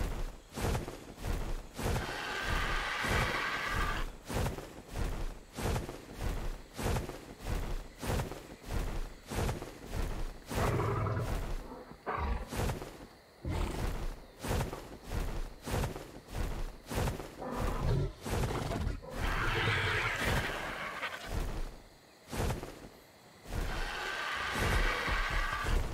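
A large bird's wings flap in quick, steady beats.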